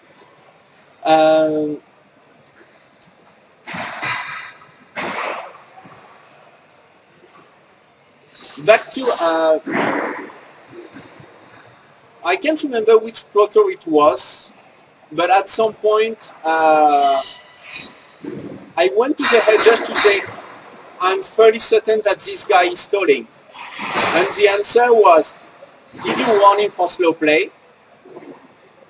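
A man speaks calmly with pauses, lecturing in a large echoing room.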